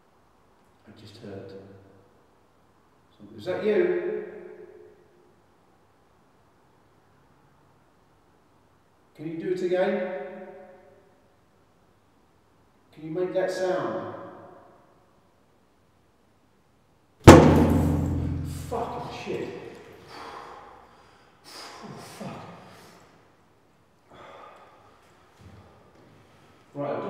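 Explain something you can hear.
A man calls out in short loud bursts from down an echoing hallway.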